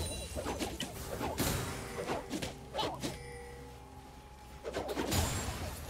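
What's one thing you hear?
Video game spell effects crackle and burst in quick succession.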